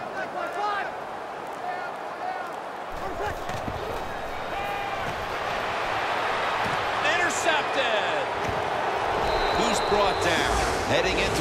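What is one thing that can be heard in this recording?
A large stadium crowd roars and cheers, growing louder.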